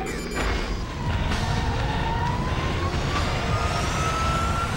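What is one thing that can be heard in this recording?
An aircraft engine whines, rising slowly in pitch.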